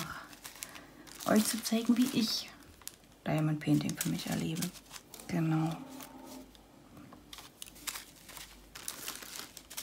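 A sheet of paper rustles as it is moved.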